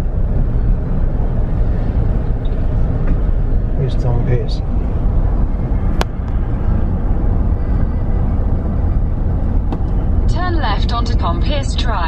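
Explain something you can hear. Tyres roll with a low rumble on the road.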